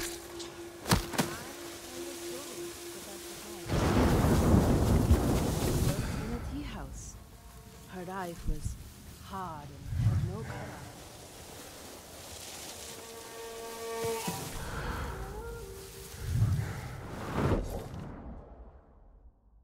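Tall grass rustles as someone creeps through it.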